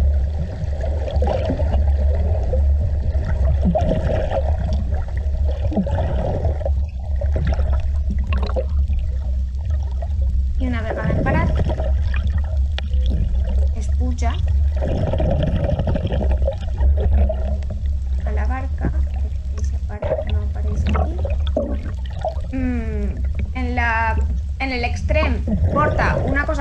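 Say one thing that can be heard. Water rushes and bubbles underwater.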